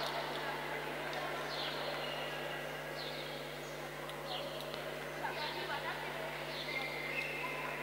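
Sports shoes squeak on a hard court in an echoing hall.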